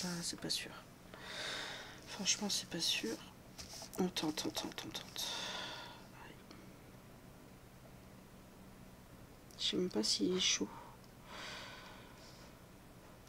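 A young woman talks casually and close to a microphone.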